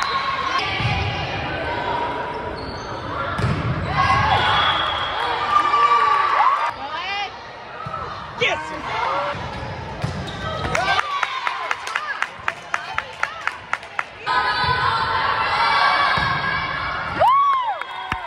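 Young women shout and cheer in a large echoing gym.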